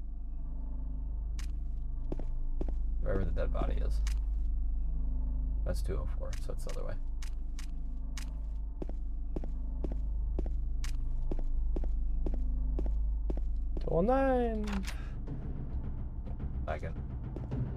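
Footsteps tread slowly along a hard floor.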